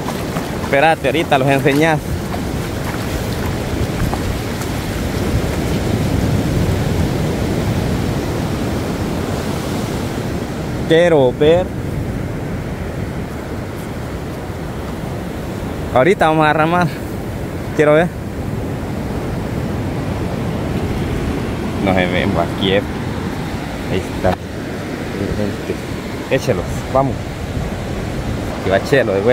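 A man talks nearby, outdoors.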